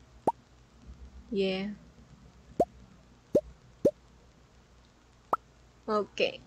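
Short rising pops sound as game items are picked up and placed.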